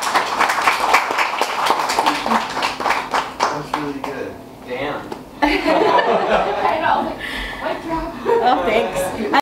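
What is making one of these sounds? A woman laughs heartily close by.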